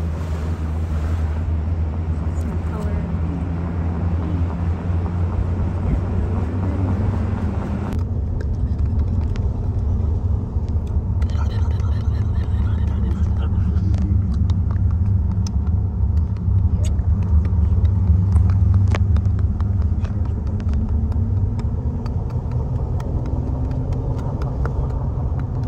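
A vehicle engine hums low and steady as it drives along.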